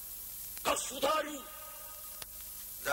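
An older man shouts angrily.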